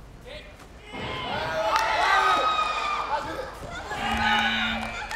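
A crowd in a large hall cheers and applauds loudly.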